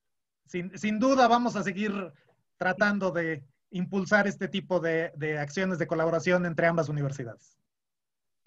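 A middle-aged man talks with animation over an online call.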